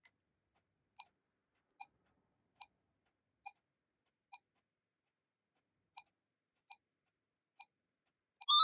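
Short electronic beeps sound as buttons are pressed on a small device.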